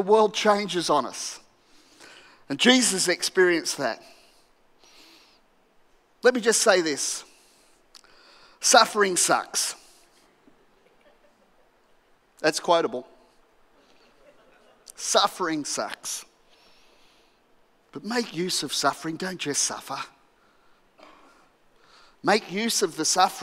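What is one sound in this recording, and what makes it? A middle-aged man speaks with animation through a headset microphone, pausing between phrases, in a large echoing hall.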